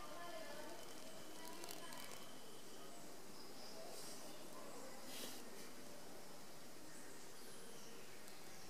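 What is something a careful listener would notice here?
A bear sniffs and snuffles close by.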